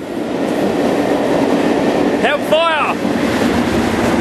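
A second Class 37 English Electric diesel locomotive roars past at the rear of the train.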